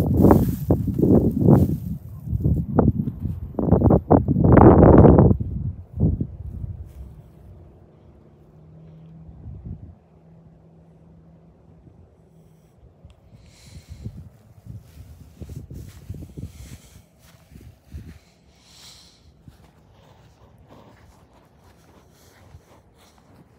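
Clothing rubs and rustles loudly against the microphone.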